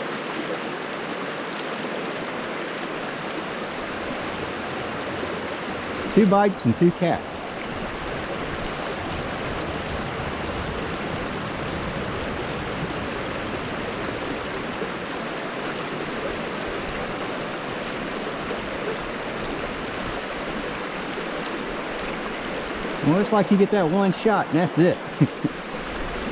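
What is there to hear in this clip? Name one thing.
A shallow stream babbles steadily over rocks outdoors.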